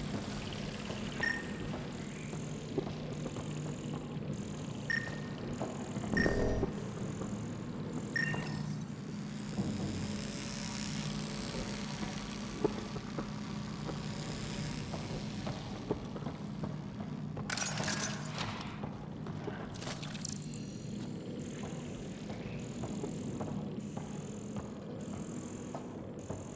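A scanner hums steadily.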